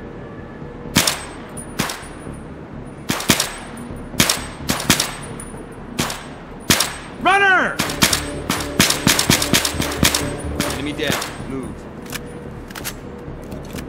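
Rifle shots crack in quick bursts, each followed by a short echo.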